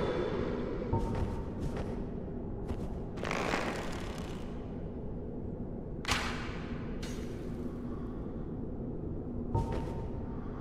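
Swords clash and slash with sharp metallic hits.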